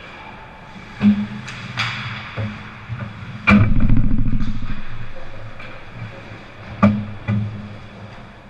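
A puck and sticks clack and thud against the goal and boards.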